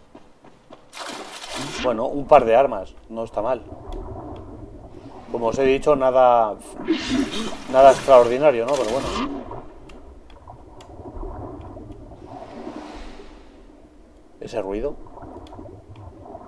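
Water splashes and gurgles as a swimmer dives and moves underwater.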